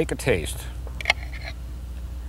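A knife scrapes on a plate.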